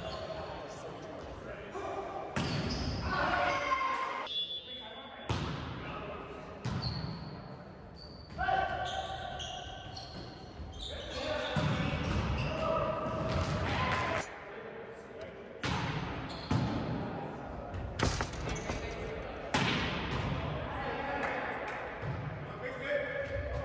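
Young men and women call out and talk loudly across an echoing hall.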